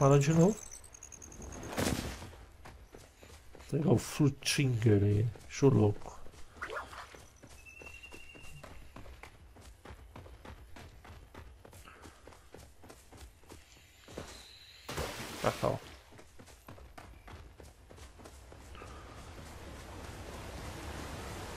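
Footsteps patter quickly on grass and dirt as a game character runs.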